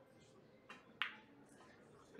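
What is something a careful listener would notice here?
A cue strikes a billiard ball with a sharp click.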